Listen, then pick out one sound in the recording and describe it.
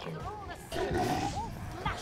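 A fire spell bursts with a whooshing roar.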